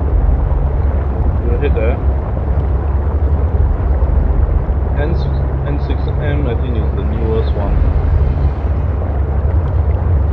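A small submarine's motor hums underwater.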